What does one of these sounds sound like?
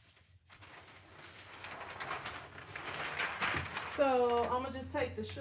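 Paper crinkles loudly as a sheet is peeled away.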